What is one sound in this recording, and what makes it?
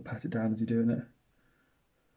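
A young man speaks calmly close by.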